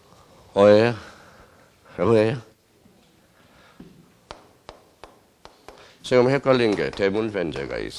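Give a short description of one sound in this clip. A man speaks calmly through a microphone, as if lecturing.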